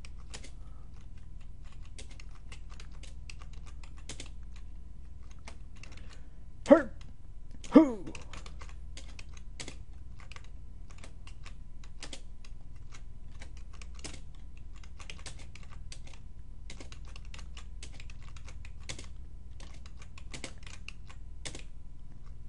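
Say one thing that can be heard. Short game clicks sound as falling blocks land.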